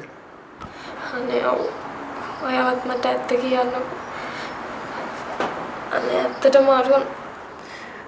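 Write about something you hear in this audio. A young woman speaks plaintively.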